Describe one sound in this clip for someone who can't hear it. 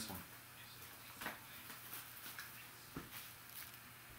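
Plastic wrapping crinkles as hands tear open a pack.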